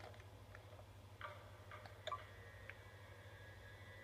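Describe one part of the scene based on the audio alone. Keypad buttons click and beep as they are pressed.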